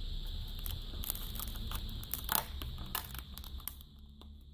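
Foil tape crinkles as it is peeled off a metal panel.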